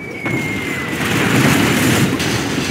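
Explosions boom and rumble in a video game battle.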